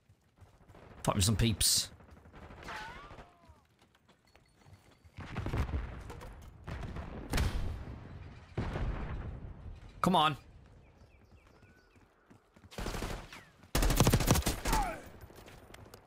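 Gunshots crack in bursts from a video game.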